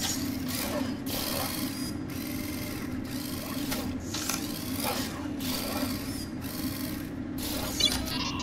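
An old television hisses with static.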